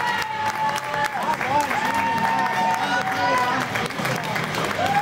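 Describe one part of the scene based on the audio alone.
A crowd of spectators cheers and shouts in a large echoing rink.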